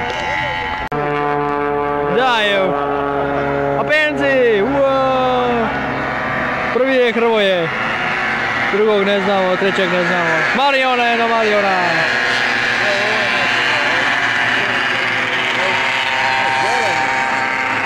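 Racing motorcycle engines whine loudly, rising and falling in pitch as the bikes shift gears and speed by.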